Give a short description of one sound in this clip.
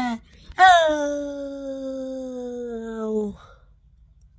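A young person holds a long open vowel close to the microphone, slowly falling in pitch.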